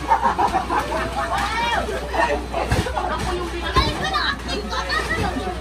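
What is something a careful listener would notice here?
Children shout and squeal excitedly close by.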